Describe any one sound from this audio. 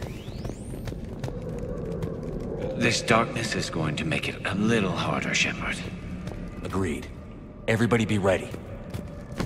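Footsteps crunch softly on rocky ground.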